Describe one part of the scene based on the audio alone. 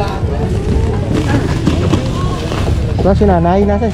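A plastic bag rustles and crinkles in someone's hands.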